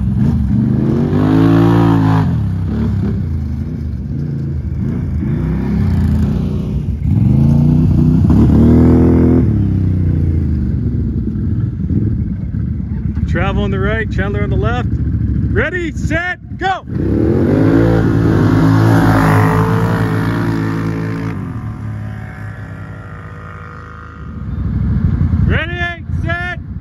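Quad bike engines roar and rev up and down close by, outdoors.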